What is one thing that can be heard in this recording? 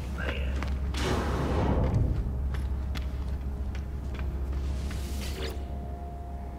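A swirling portal whooshes loudly.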